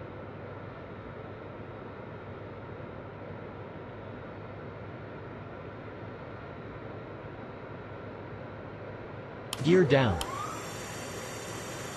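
Jet engines drone steadily.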